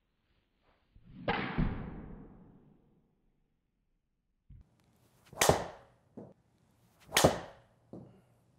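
A golf club strikes a ball with a sharp crack that echoes briefly.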